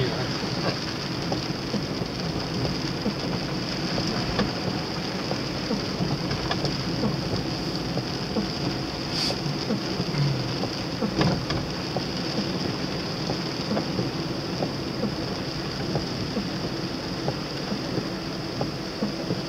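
Rain patters steadily on a car's windscreen.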